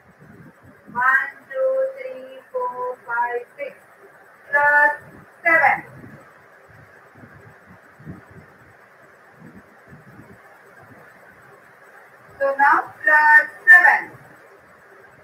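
A woman speaks clearly nearby.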